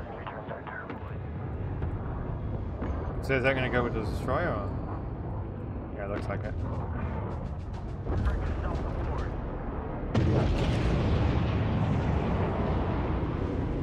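Laser weapons fire in rapid bursts during a space battle.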